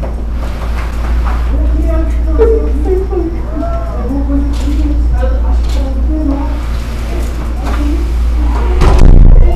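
Women talk with animation at a distance in an echoing room.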